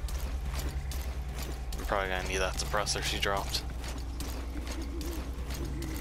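A soldier crawls over gritty dirt.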